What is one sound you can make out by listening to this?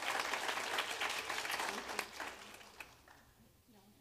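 An audience applauds in a large hall, then the clapping fades out.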